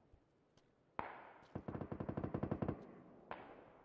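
Rifle shots ring out in quick succession.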